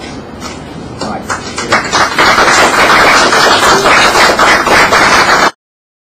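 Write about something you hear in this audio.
A group of people applaud, the clapping growing louder.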